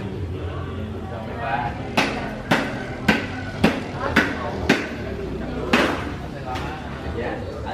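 Men and women talk casually nearby outdoors.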